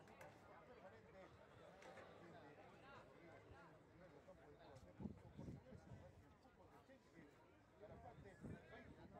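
Young men shout and call to each other outdoors at a distance.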